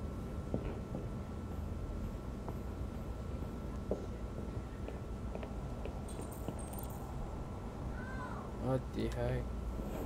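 Footsteps tread softly on a floor.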